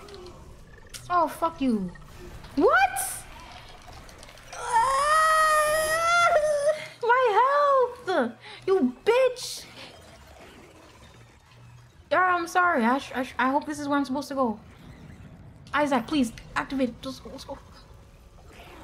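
A young woman talks and exclaims with animation into a close microphone.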